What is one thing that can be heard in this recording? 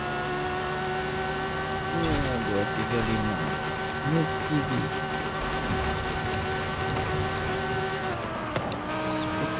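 A racing car engine roars steadily at high speed, then drops in pitch as it slows.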